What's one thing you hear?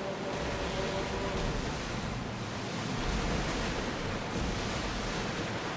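Waves crash and splash against a wooden ship's bow.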